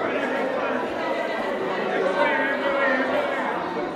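A woman sings loudly with feeling.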